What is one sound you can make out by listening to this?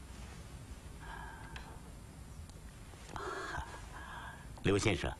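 An elderly man speaks a few words nearby.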